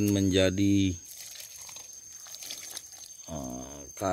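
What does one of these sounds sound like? Liquid splashes as it is poured out of a bucket.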